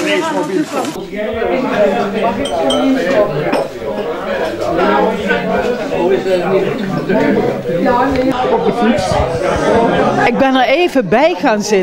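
A crowd of elderly people chatters indoors.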